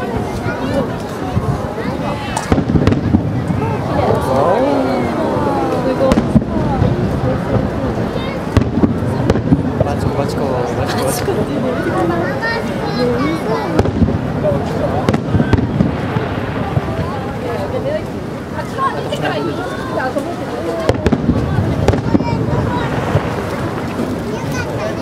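Fireworks burst with sharp bangs.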